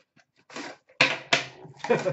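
A cardboard box is set down on a glass counter with a light knock.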